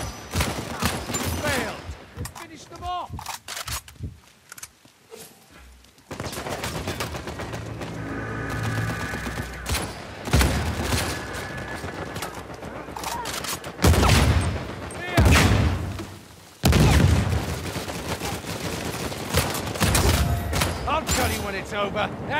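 Sniper rifle shots crack repeatedly.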